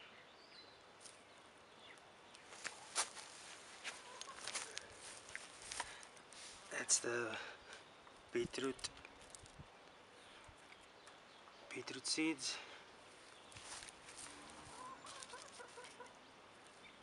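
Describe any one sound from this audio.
Dry straw rustles and crackles close by.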